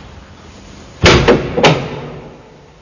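A heavy wooden door slams shut with a loud thud.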